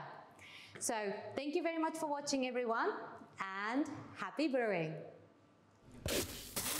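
A woman speaks cheerfully and close to a microphone.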